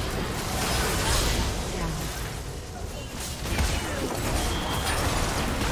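Magic spell effects whoosh and crackle.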